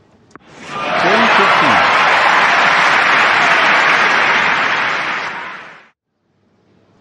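A crowd cheers and applauds loudly, then fades away.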